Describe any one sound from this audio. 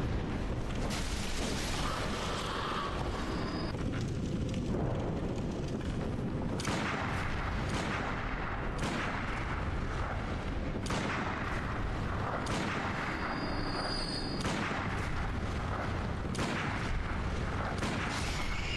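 Blades slash and clang in a fight.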